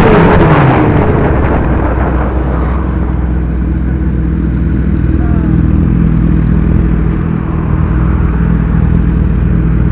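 A motorcycle engine idles with a low steady rumble.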